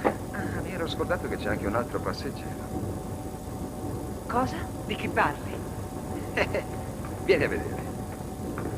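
Men talk with each other in short exchanges.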